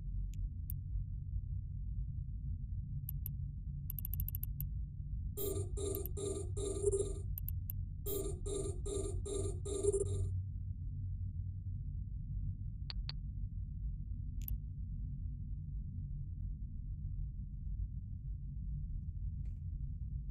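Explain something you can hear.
A spaceship engine hums in a low, steady drone.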